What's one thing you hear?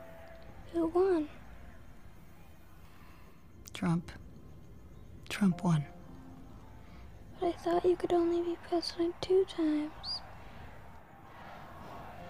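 A boy groans and whimpers in distress.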